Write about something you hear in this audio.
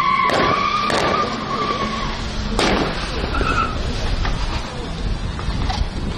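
An SUV drives fast around a curve.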